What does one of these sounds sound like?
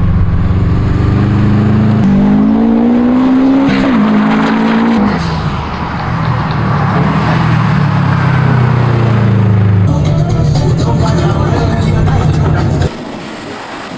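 A car engine roars and revs hard as it speeds past.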